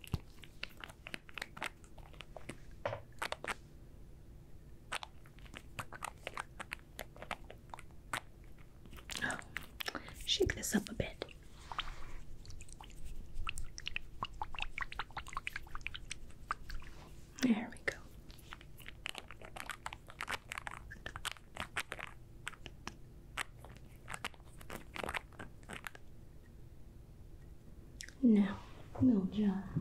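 Small objects tap and click close to a microphone.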